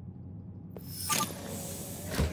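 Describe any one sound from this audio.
An electronic door panel beeps.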